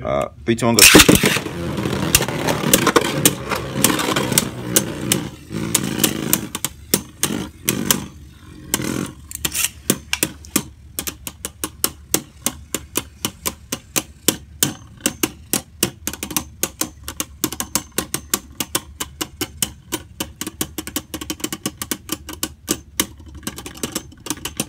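Spinning tops whirr and clash together repeatedly in a plastic dish.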